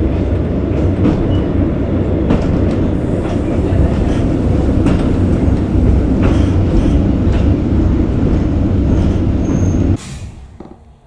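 A train rumbles loudly along the tracks.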